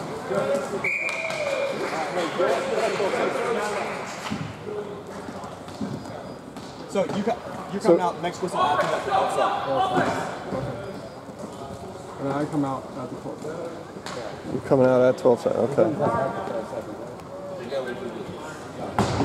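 Young players shout and call out across an echoing rink.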